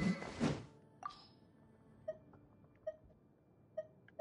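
Short soft chimes sound as menu items are picked.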